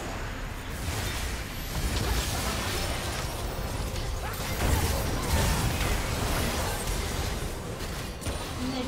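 Video game spell effects whoosh and burst during a fight.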